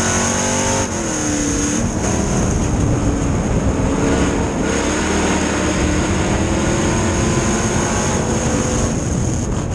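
A race car engine roars loudly from close by, its pitch rising and falling.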